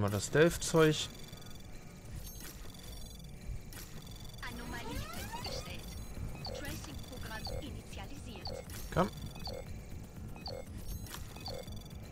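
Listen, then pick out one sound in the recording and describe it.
Electronic game beeps and chimes sound in quick succession.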